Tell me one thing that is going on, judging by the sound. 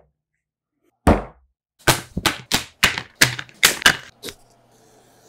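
A pronged chisel is struck through leather with loud, rapid taps.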